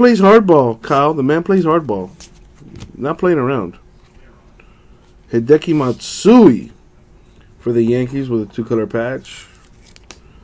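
Trading cards rustle and slide between hands.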